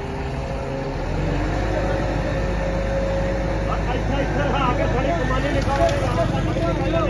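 Men talk among themselves nearby.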